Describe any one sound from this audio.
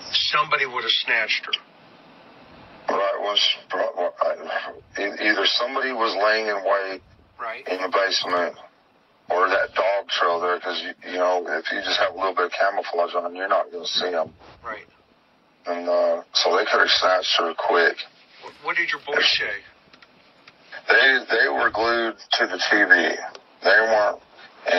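A man speaks into a microphone over an online call.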